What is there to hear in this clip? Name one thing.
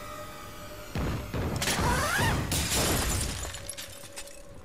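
A grappling launcher fires with a loud metallic whir.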